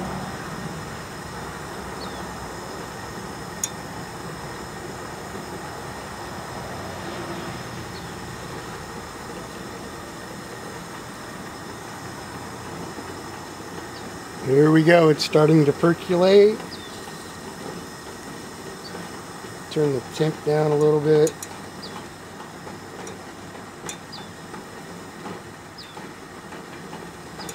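A camp stove burner hisses softly and steadily.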